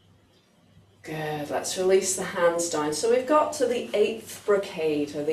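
A woman speaks calmly and clearly close by.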